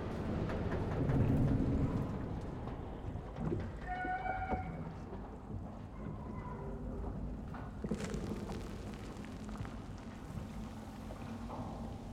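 Water laps and splashes against a drifting boat.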